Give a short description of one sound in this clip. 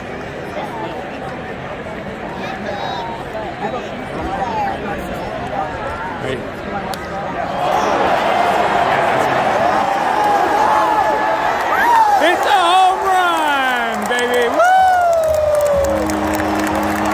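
A large stadium crowd murmurs and chatters outdoors.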